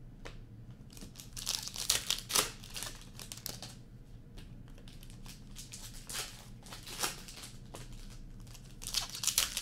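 Plastic wrappers crinkle and rustle as packs are torn open.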